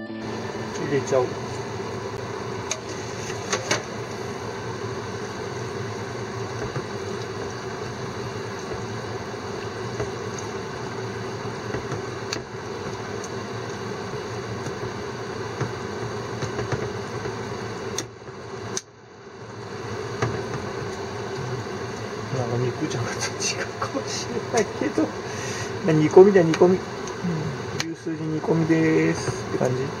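A ladle clinks and scrapes against a metal pan.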